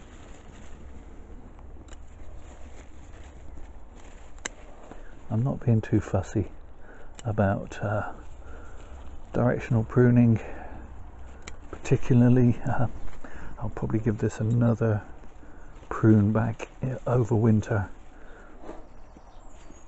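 Pruning shears snip through plant stems with sharp clicks.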